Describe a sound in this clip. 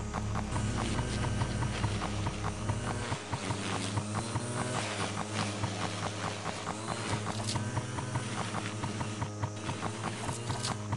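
A small mower whirs steadily as it cuts through grass.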